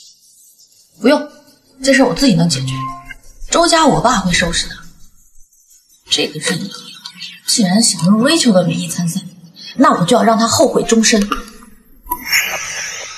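A young woman answers firmly, close by.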